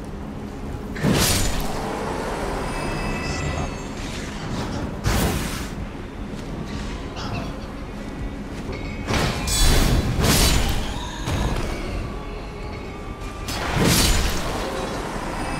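A sword swings and strikes with loud whooshing blows.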